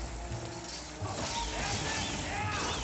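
A sword swings and strikes a creature.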